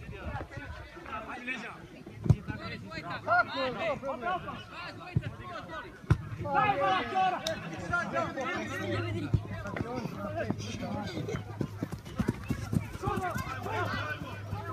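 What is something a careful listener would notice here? Young men shout and call out to each other across an open playing field.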